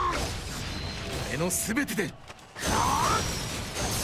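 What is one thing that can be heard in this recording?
Magical blasts whoosh and burst.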